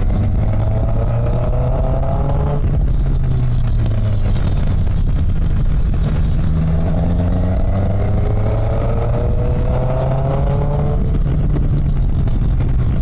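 A motorcycle engine hums steadily and rises in pitch as it speeds up.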